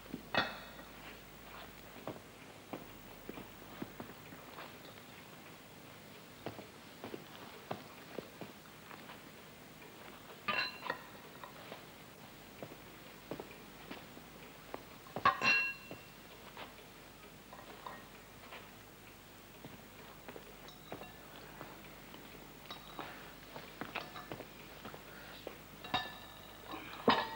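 Cutlery clinks and scrapes against china plates.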